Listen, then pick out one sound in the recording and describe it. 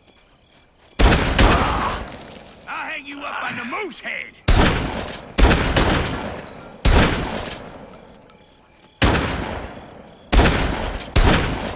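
A shotgun fires loud, booming blasts, one every second or two.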